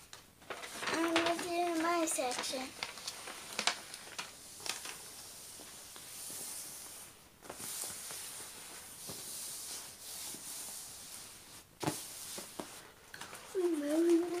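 A young girl speaks briefly close by.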